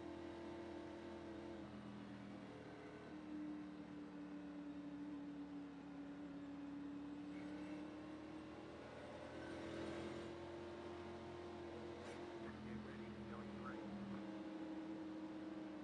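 Other race car engines drone nearby.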